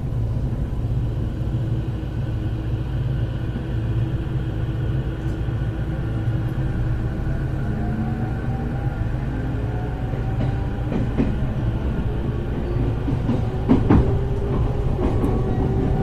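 The motors of an electric commuter train whine.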